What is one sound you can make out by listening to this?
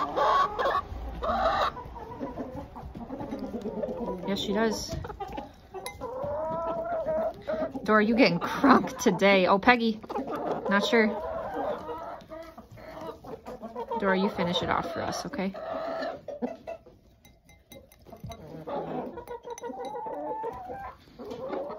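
Hens cluck softly close by.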